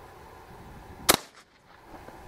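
A gunshot cracks sharply outdoors.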